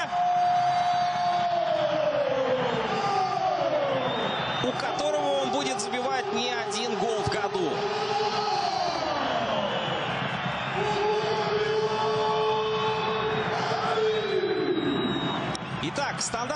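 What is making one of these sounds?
A large stadium crowd chants and sings in long, drawn-out notes.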